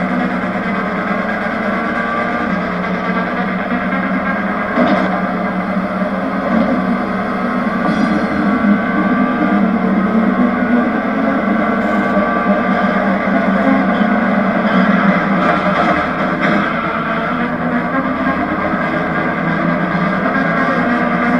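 A racing car's engine roars steadily at high revs.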